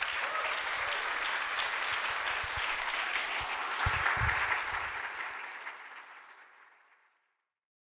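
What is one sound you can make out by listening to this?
A large crowd applauds, and the applause slowly fades away.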